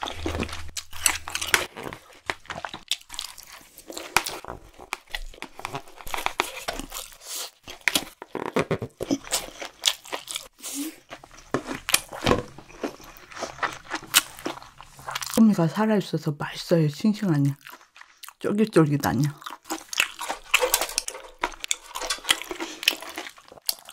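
A woman chews food with wet, smacking sounds close to a microphone.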